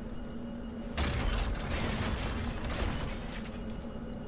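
Heavy blows thud and crash.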